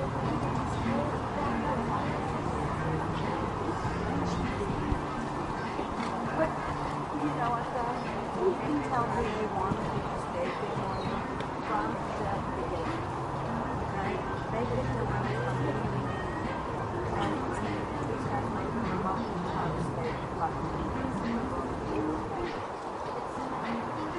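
A horse's hooves thud on grass as it canters and jumps.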